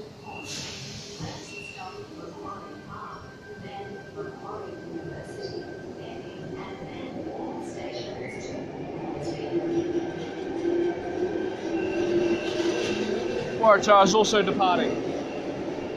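An electric suburban train rolls past a platform in an echoing underground station.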